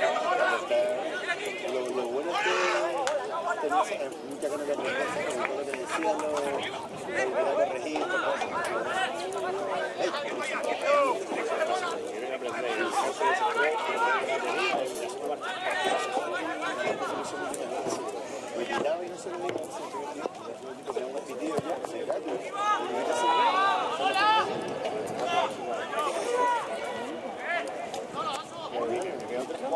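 Men shout and call to each other across an open playing field.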